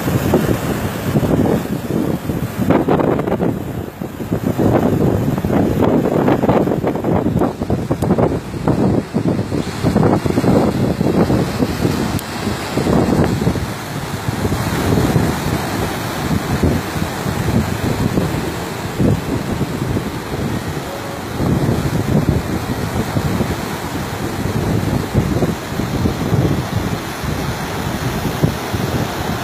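Rough sea waves crash and churn against a shore.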